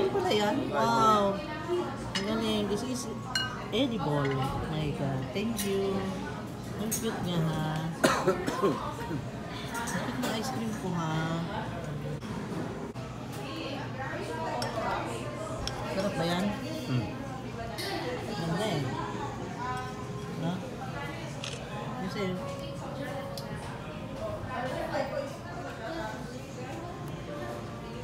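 Men talk and chat nearby in a lively way.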